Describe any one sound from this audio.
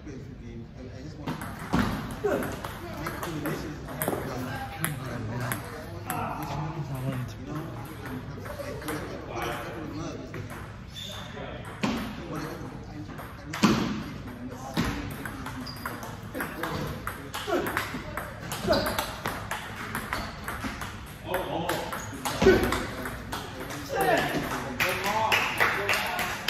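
A ping pong ball clicks back and forth off paddles and a table.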